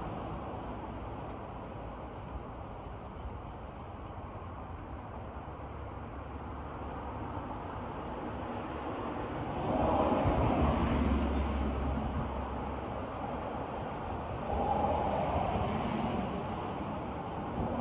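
Wind rustles softly through tall trees outdoors.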